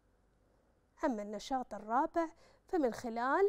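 A young woman speaks calmly and clearly, as if explaining a lesson.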